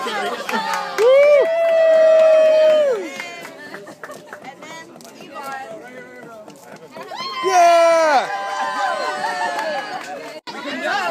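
A group of men and women sing together loudly in long held notes outdoors.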